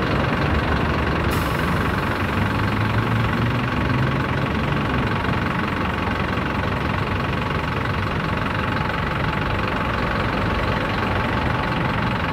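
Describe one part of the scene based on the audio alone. A bus engine rumbles steadily close by.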